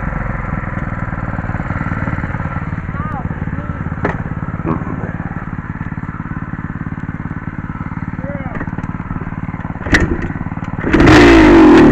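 A dirt bike engine idles with a low rumble.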